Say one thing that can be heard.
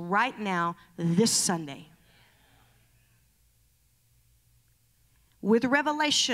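A woman speaks with animation into a microphone, heard through loudspeakers in a large hall.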